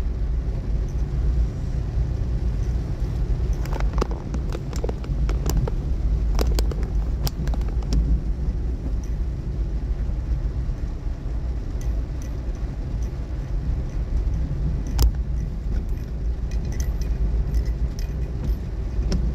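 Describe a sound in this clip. A car engine rumbles low and steady while driving.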